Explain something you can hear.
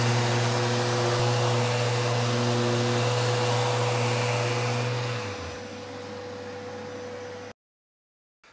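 An electric sander whirs steadily against wood, then quietens.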